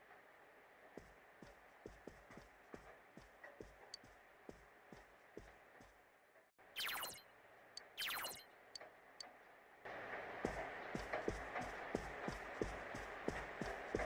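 Footsteps tap steadily across a floor.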